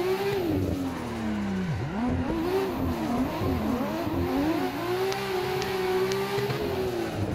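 A racing car engine revs up and down sharply as gears shift.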